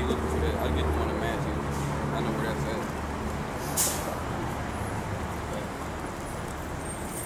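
City traffic rumbles steadily in the background.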